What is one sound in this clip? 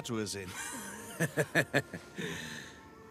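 A middle-aged man chuckles briefly.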